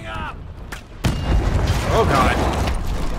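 A loud explosion booms and debris scatters.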